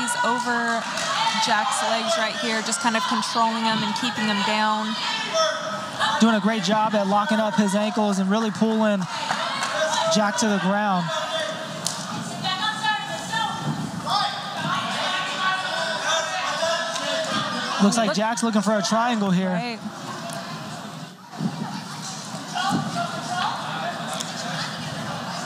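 A small indoor crowd shouts and cheers.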